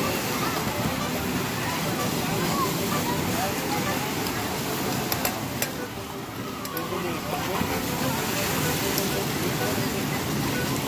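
Water splashes and churns as small boats spin nearby.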